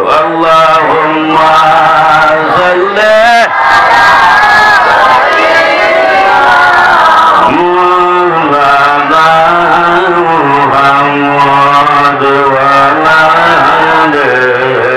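A young man chants in a long, wavering melody through a microphone and loudspeakers.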